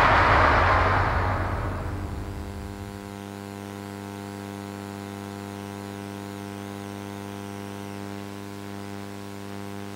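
Electronic music plays from an arcade game's loudspeaker, settling into a steady held chord.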